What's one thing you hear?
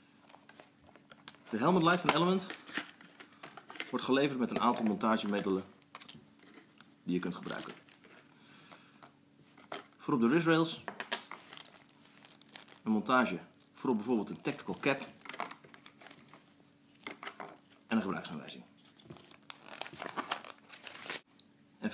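A plastic blister pack crinkles and clicks as hands open it.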